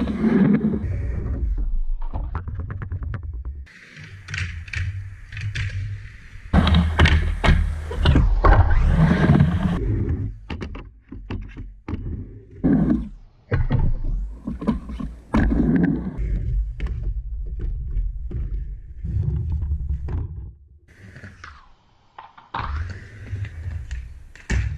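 Skateboard wheels roll and rumble on a wooden ramp.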